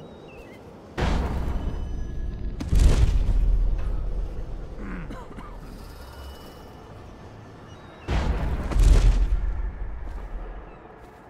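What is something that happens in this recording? A rushing whoosh sweeps past twice.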